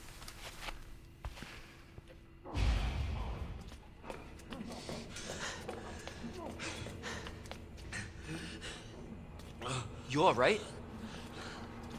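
Footsteps walk slowly across a hard floor.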